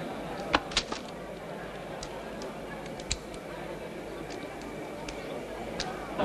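Metal clicks as a man loads a pistol magazine.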